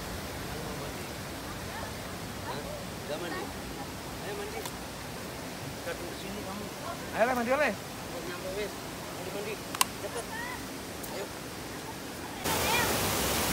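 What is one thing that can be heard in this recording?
Young boys talk nearby.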